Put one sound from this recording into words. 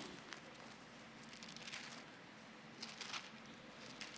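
Pages of a book rustle as a man turns them.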